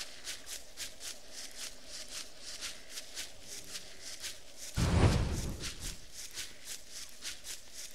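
Footsteps tread quickly and evenly on soft ground.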